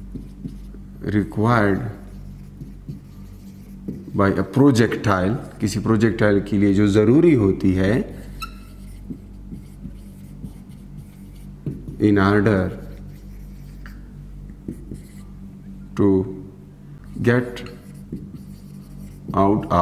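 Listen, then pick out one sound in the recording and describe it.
A man speaks calmly and clearly in short phrases with pauses, heard close up.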